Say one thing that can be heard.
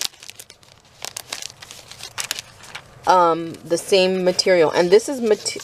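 Paper cutouts rustle and flutter as hands shuffle them close by.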